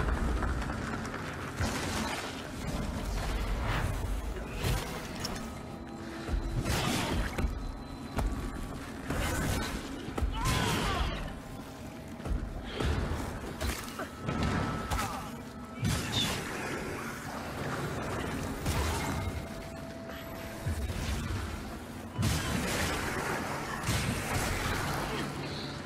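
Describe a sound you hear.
Weapons clash and slash in a fight.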